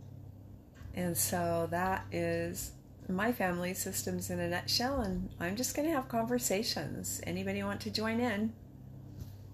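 A middle-aged woman speaks warmly and with animation, close to a microphone.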